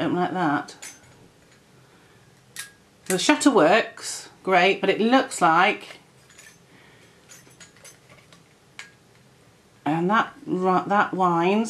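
A woman speaks calmly and close by, pausing between phrases.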